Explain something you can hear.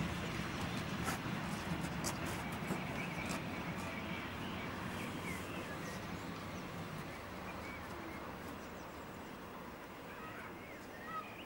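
A steam locomotive chuffs and rumbles as it pulls away.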